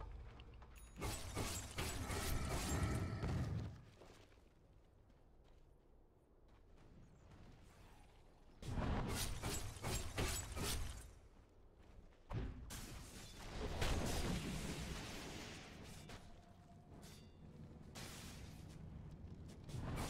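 Magic spells crackle and burst as game characters fight.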